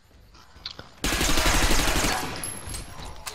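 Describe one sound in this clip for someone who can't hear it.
An automatic gun fires a rapid burst.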